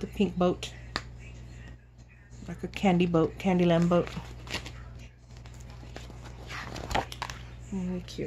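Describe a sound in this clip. Paper pages of a book rustle as they are turned.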